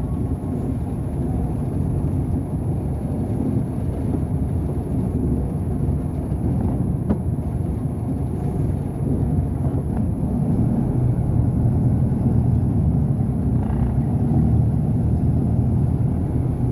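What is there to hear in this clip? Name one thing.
Diesel truck engines rumble low and steady nearby.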